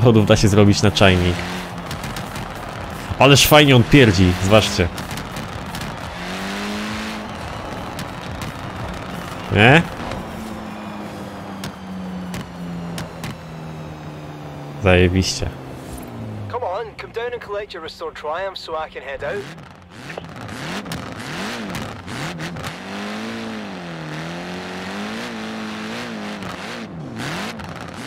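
A car engine revs hard and roars at speed.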